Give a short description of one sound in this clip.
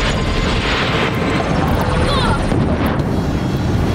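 A beam weapon fires with a sharp zap.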